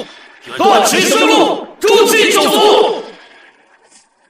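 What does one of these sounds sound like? A man speaks loudly with animation, close by.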